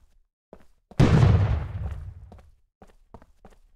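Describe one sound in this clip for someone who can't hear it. A gun fires with a loud blast that echoes away.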